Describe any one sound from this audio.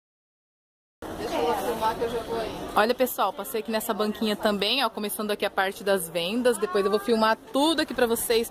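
Women talk with animation close by.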